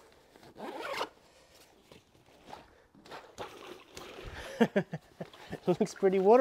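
A fabric bag rustles as it is lifted.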